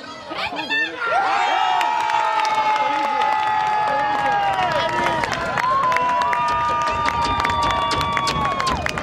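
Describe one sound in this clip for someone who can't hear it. Young men cheer and yell loudly in celebration.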